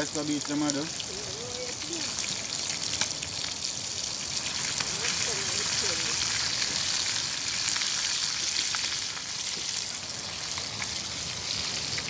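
A metal spatula scrapes against a frying pan.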